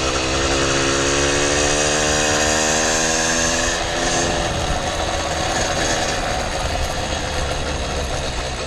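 Small hard wheels roll over smooth pavement with a steady rumble.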